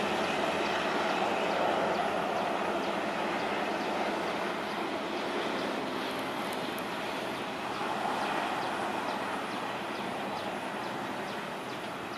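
A diesel train rumbles along the tracks toward the listener.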